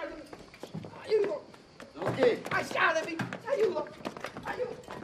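A man cries out for help in distress.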